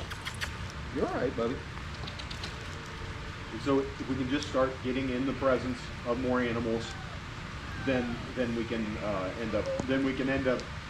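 A man talks close by in a lively, coaxing voice.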